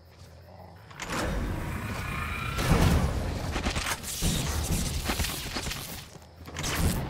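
Magic blasts whoosh and crackle in bursts.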